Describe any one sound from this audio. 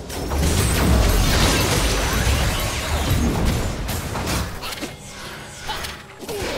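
Game spell effects crackle and whoosh in a fast fight.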